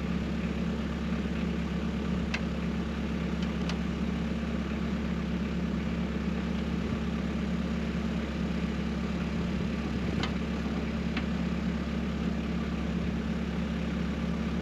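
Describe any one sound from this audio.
A snowblower engine runs with a steady, loud drone.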